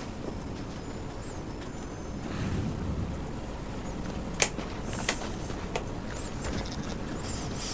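Footsteps crunch on a path.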